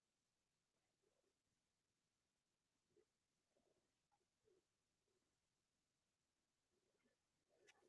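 Hands rustle against headphones close to a microphone.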